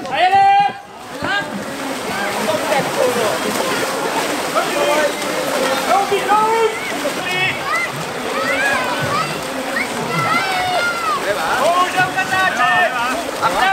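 Paddles splash hard through water as a boat surges forward.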